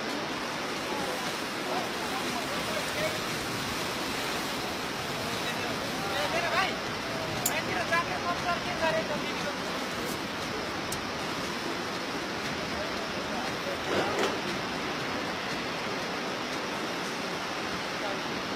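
Wind rushes steadily past a microphone outdoors.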